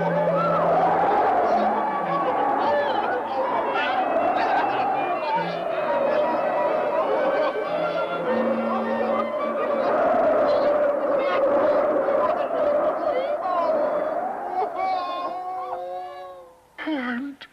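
String instruments play a lively melody.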